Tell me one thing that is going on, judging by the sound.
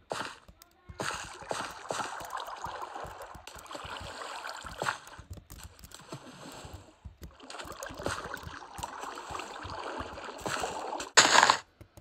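Water flows and trickles steadily.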